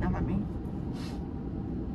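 A young woman speaks softly from close by.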